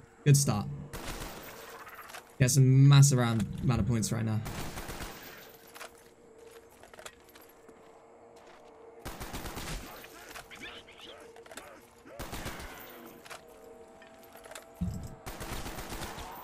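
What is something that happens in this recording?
Rifle shots boom sharply, one at a time.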